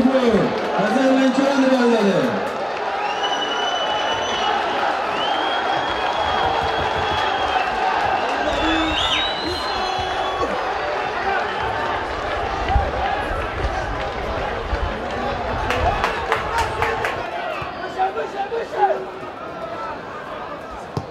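A stadium crowd murmurs and cheers throughout.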